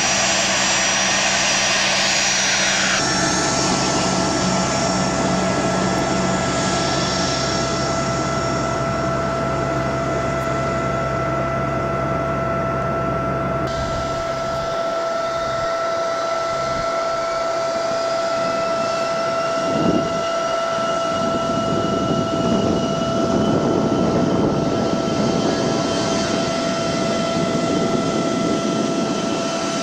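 Jet engines whine loudly and steadily close by.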